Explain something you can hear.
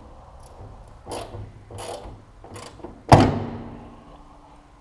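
A hand pats and knocks on a metal machine part.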